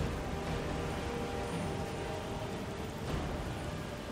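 A magic spell crackles and hums softly.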